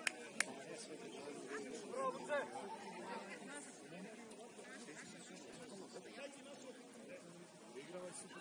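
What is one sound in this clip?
Distant players and spectators shout and call out across an open field outdoors.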